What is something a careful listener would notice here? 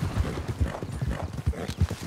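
Grass rustles as a horse pushes through it.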